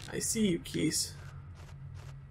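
A man speaks briefly into a nearby microphone.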